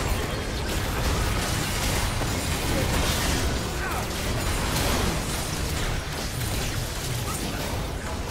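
Magic blasts, hits and explosions from a game battle crash and boom rapidly.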